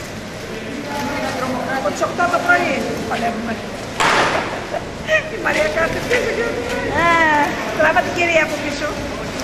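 Women talk and chat nearby.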